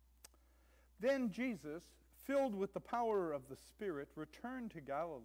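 A man reads aloud calmly through a microphone.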